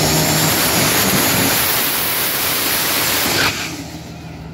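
Tyres screech and hiss as they spin against the track.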